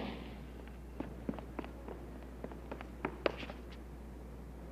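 Footsteps run across pavement outdoors.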